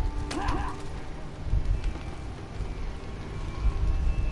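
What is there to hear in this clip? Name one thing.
Fires crackle and roar nearby.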